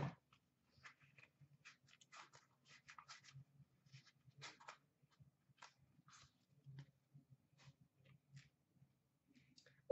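Hands rustle and tap cardboard packaging.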